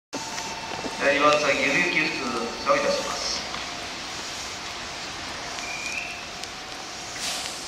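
A train rolls slowly in, its motor humming.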